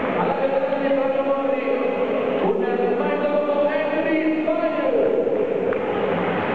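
A man announces loudly through a loudspeaker in a large echoing hall.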